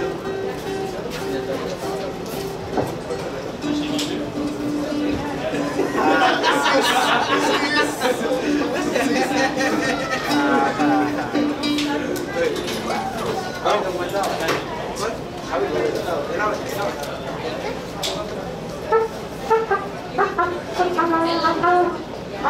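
A violin plays a melody.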